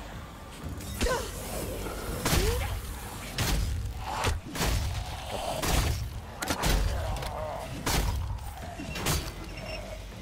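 Heavy blows thud and smack into bodies.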